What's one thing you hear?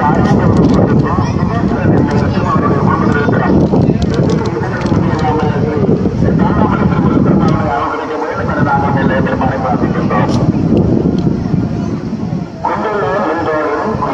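A large crowd of men, women and children chatters and shouts outdoors.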